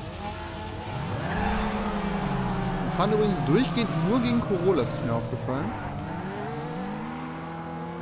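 A car engine roars as the car accelerates away.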